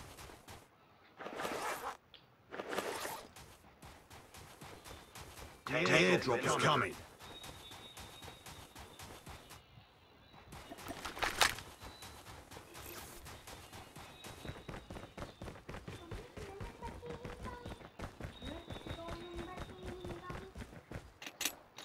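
Footsteps run quickly over crunching snow and then hard ground.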